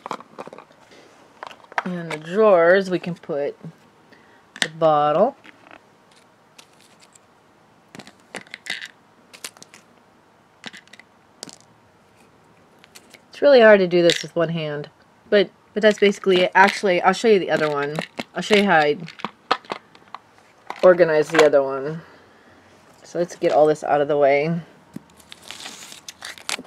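Small plastic toy pieces click and rattle as they are handled.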